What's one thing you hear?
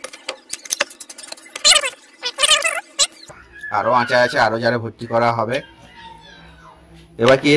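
A metal spoon clinks and scrapes against a glass jar.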